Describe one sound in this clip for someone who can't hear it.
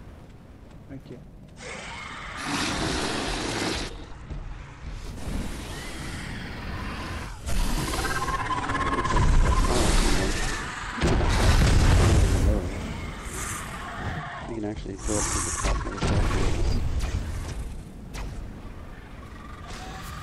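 An energy blade swings with a crackling whoosh.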